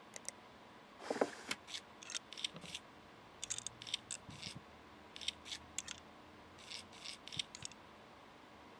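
Small screws click and whir as they are unscrewed one after another.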